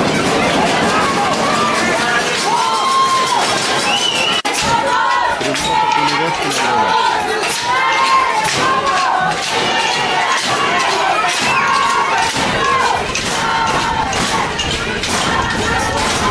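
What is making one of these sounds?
A crowd of spectators cheers and calls out outdoors.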